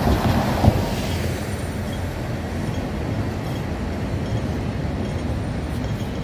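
A double-decker bus drives along with an engine hum.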